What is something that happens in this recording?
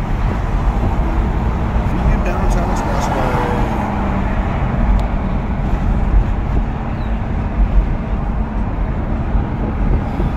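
A car's engine hums and its tyres roar steadily on a highway, heard from inside the car.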